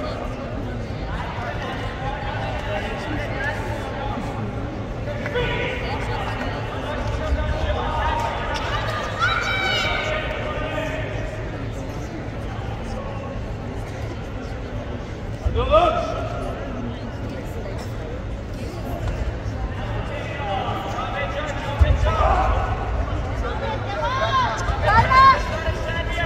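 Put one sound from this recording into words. Spectators in a large echoing hall shout and cheer.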